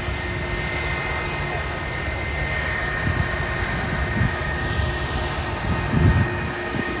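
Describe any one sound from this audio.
A jet airliner's engines roar steadily as it rolls along a runway.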